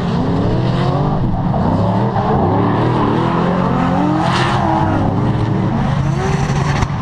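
A drifting car's engine roars and revs in the distance.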